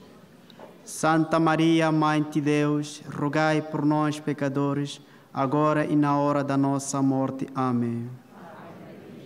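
A man sings a slow chant through a microphone.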